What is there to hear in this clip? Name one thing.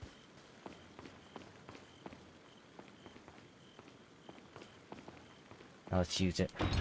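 Footsteps tap steadily on a stone floor.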